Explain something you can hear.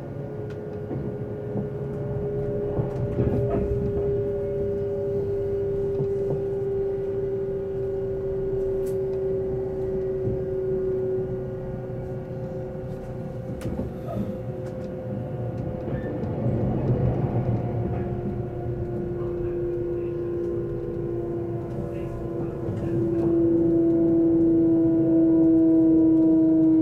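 A train rumbles steadily along the tracks, heard from inside a carriage.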